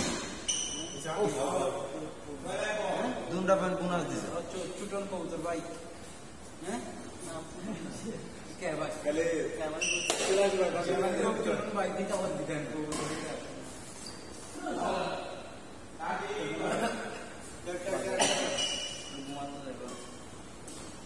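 A young man talks loudly across an echoing hall.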